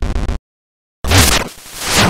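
A loud whooshing burst sounds and fades.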